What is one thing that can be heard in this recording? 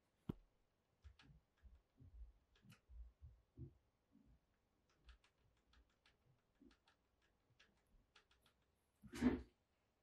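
Leather rubs and taps softly against a plastic case.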